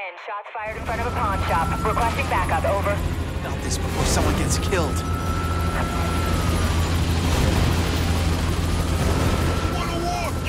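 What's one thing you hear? Police sirens wail along a street.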